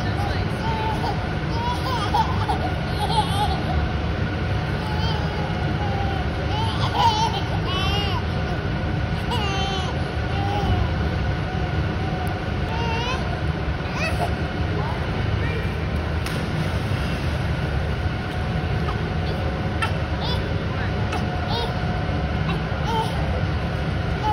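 Water laps and sloshes gently.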